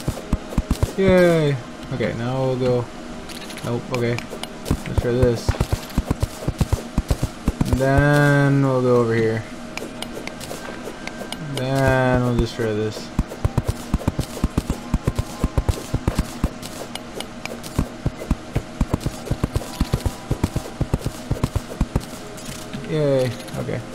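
A young woman speaks casually into a close microphone.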